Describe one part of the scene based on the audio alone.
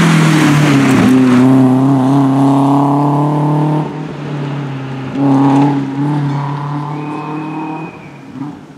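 A car engine revs hard as the car speeds away and fades into the distance.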